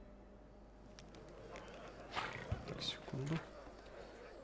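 A magical spell bursts with a bright whoosh.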